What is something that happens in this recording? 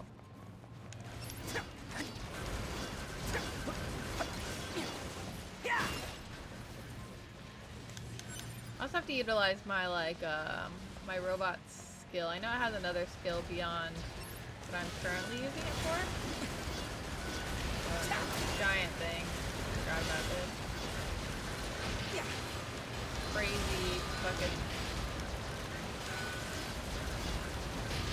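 Blades clash and clang in a fight.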